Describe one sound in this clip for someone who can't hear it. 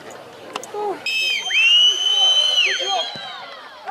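A referee's whistle blows sharply.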